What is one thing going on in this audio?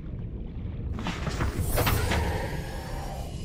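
A small submarine's hatch opens with a loud rushing whoosh.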